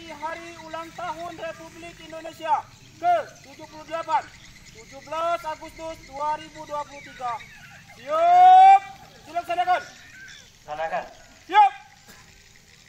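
A man calls out loud commands outdoors.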